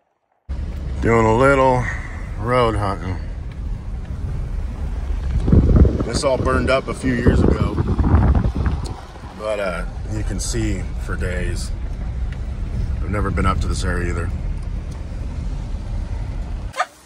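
A man talks inside a moving vehicle.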